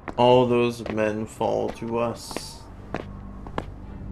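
Footsteps of two men walk slowly on a hard floor.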